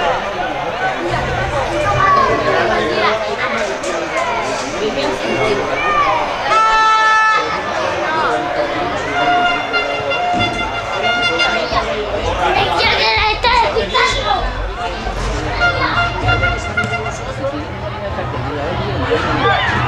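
Young men shout to one another across an open field.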